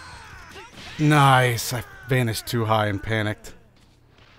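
Heavy blows land with sharp smacks and bursts.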